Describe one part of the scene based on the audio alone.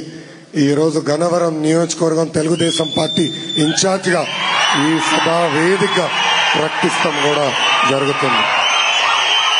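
A young man speaks into a microphone with animation, heard through loudspeakers.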